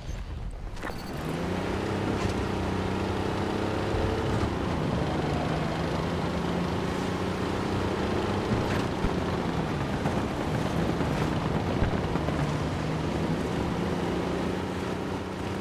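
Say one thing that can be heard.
A tank engine roars and rumbles steadily, its pitch rising and falling.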